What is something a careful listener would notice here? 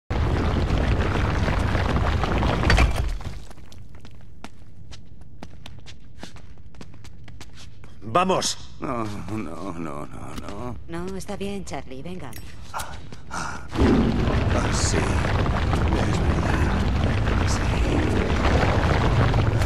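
A low rumbling roar fills the air.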